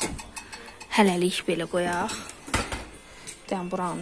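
A dishwasher door shuts with a thud.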